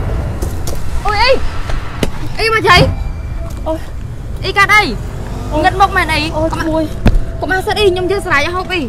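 A woman wails and cries loudly nearby.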